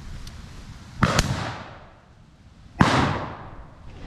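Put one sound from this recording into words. A gun fires twice close by, with a sharp echoing crack.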